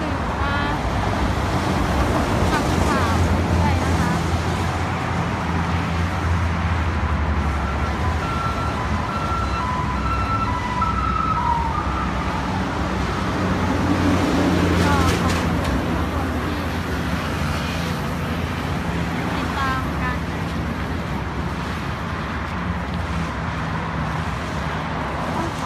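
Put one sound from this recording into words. Footsteps shuffle steadily on pavement outdoors.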